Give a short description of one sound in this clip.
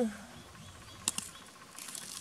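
Garden shears snip a plant stem.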